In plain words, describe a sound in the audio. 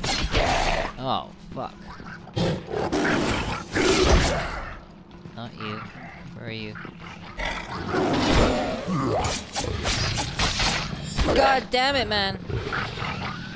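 A blade slashes and strikes flesh.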